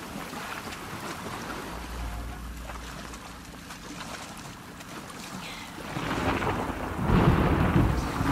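Water splashes as a person swims with steady strokes.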